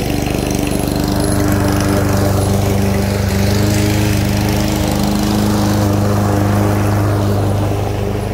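A petrol lawn mower engine runs with a loud, steady drone close by.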